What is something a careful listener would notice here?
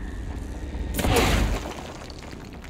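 A heavy crate smashes into a wall with a loud crash.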